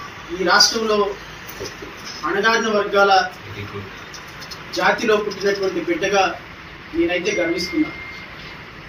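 A middle-aged man speaks steadily into microphones in short bursts with pauses.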